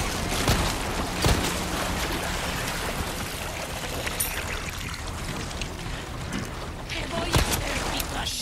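Gunshots fire in sharp single bangs.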